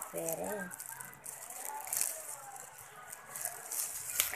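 A plastic bag crinkles and rustles close by.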